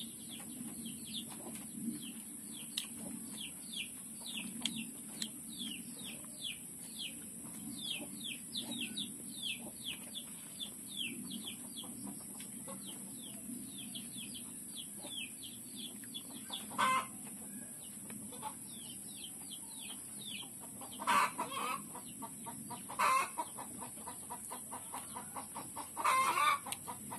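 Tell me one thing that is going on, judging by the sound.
A man chews food noisily close by.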